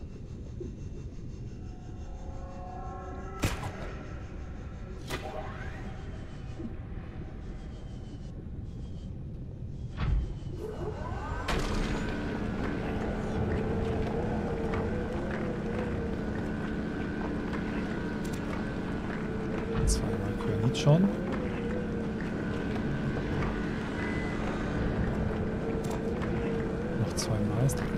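A submersible's engine hums steadily underwater.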